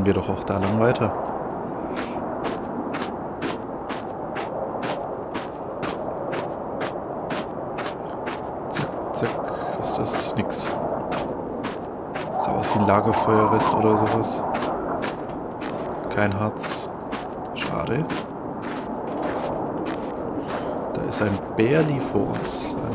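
Footsteps crunch rhythmically in snow.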